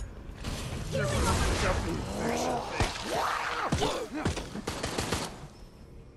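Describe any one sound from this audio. Zombies growl and screech close by.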